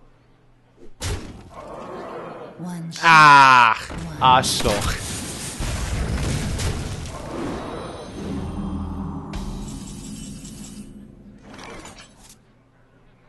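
Magical game sound effects whoosh, chime and crash as cards attack.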